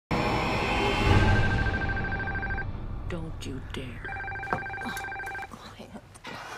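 A telephone rings.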